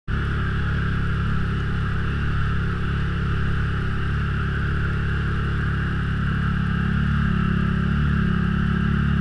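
An engine drones loudly and steadily close by.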